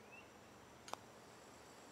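A putter taps a golf ball with a soft click.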